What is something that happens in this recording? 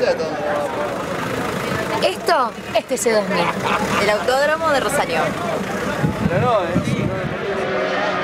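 A young woman talks cheerfully up close.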